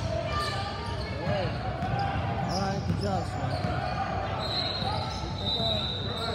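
Young girls call out to each other in an echoing gym.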